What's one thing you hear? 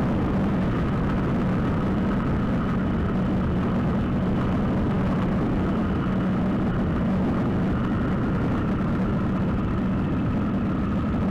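A motorcycle engine hums steadily close by.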